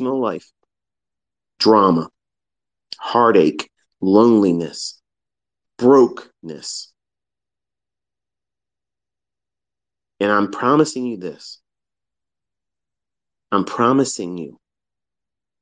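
A man speaks calmly, close to a microphone, in short phrases with pauses.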